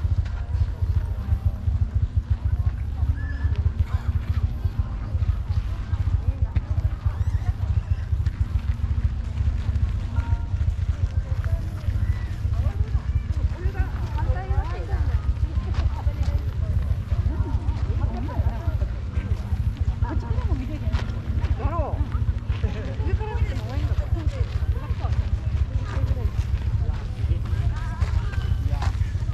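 People chatter and murmur nearby outdoors.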